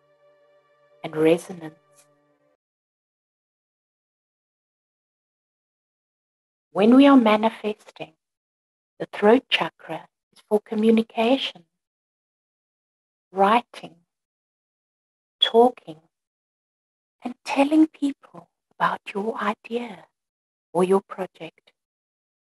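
A woman speaks calmly over an online call, in short phrases with pauses.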